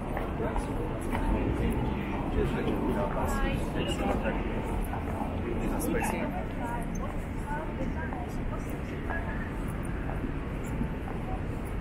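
Footsteps tap on hard pavement.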